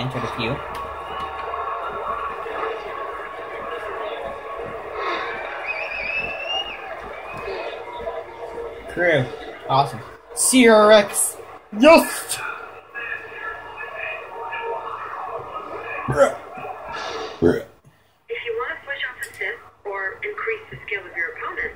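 Music plays through a television's speakers.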